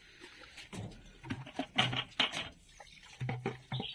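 Donkeys slurp and munch from a bucket.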